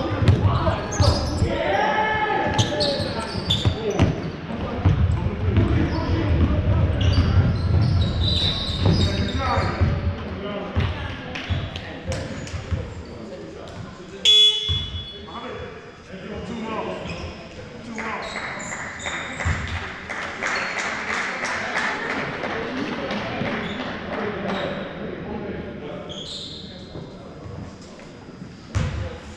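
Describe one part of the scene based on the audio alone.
Young men shout and call out during play.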